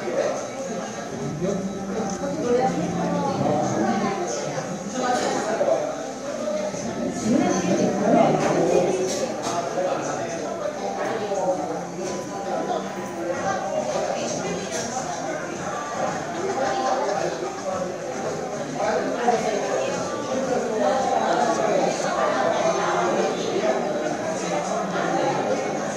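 A plastic spoon scrapes inside a paper cup.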